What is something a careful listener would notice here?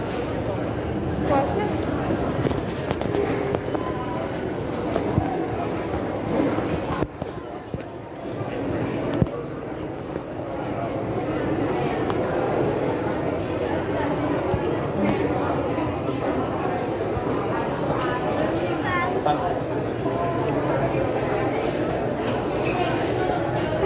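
A crowd of men and women chatters all around in a large echoing hall.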